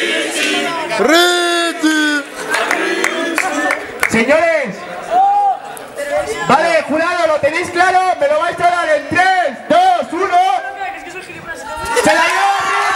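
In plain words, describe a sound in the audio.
A young man sings loudly and with feeling close by.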